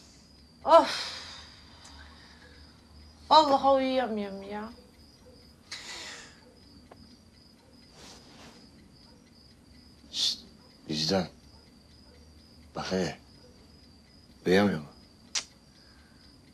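A young man and a young woman talk quietly nearby.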